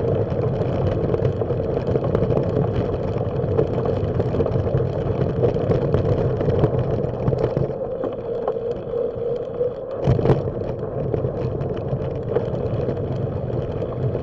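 Bicycle tyres crunch over loose gravel.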